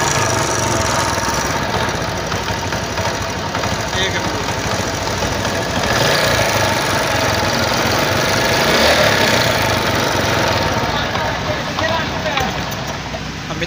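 A small motorcycle engine idles with a steady rattling chug.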